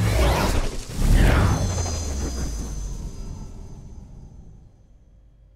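A heavy blast booms and slowly fades away.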